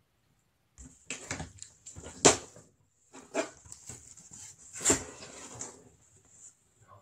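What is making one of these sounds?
A flat cardboard piece slides and taps against a box.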